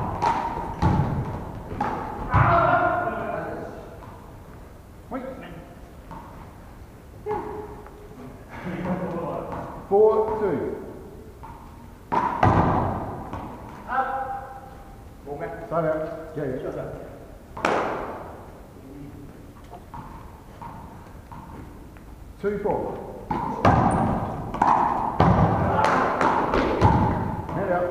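A ball thuds against the floor and walls.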